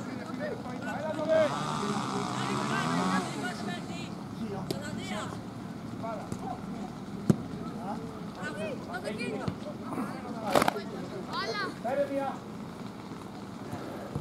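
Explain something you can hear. Boys shout and call out to each other outdoors.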